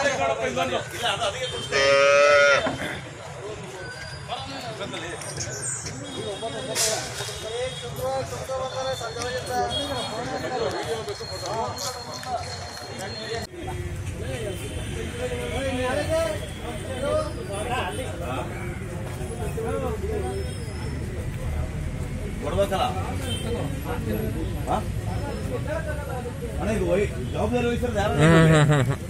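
A crowd of men talk and call out outdoors.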